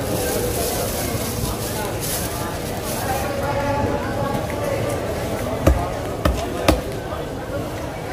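A knife slices through raw fish on a wooden block.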